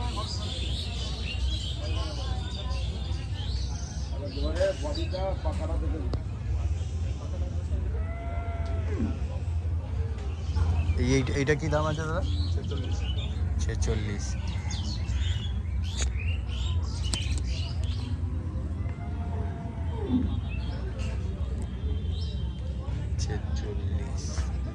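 A crowd of men chatters in the distance outdoors.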